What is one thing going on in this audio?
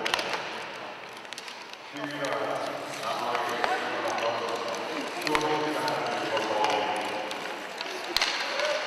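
Sled blades scrape across the ice.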